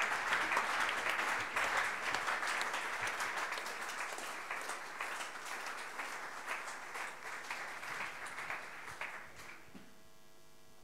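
An audience applauds in a hall.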